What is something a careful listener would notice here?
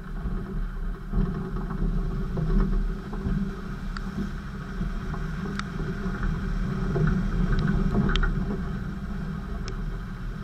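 A vehicle engine rumbles and revs while driving over rough ground.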